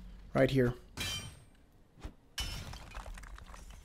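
A pickaxe strikes stone with a sharp, ringing clang.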